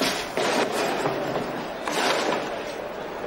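A heavy wooden crate scrapes and thumps against a metal cage.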